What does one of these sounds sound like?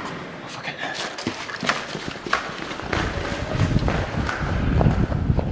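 Footsteps run quickly across a hard floor in a large echoing hall.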